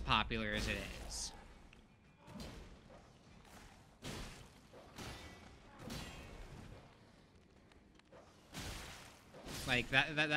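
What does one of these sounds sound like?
A heavy blade slashes and strikes flesh with wet thuds.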